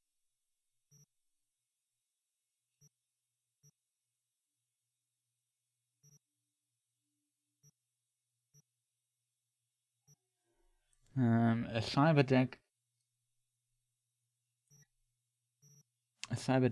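Soft electronic clicks blip now and then as menu items are selected.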